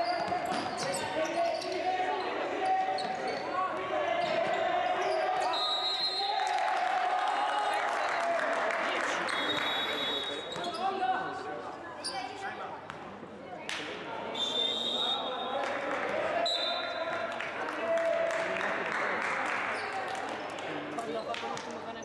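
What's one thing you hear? A man shouts instructions from the sideline.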